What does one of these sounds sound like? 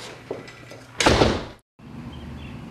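A door swings shut with a loud thud.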